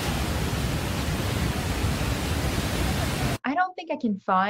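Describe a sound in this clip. A waterfall roars and crashes loudly.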